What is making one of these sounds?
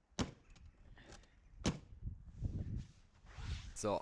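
A scooter seat lid thumps shut.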